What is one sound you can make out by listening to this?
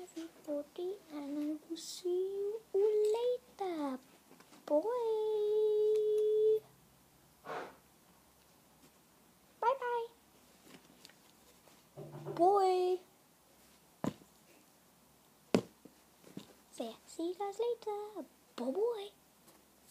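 A young boy talks with animation close to a microphone, at times drawing out his voice in a long singsong tone.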